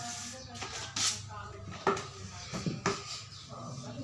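A paint roller clanks against a metal bucket.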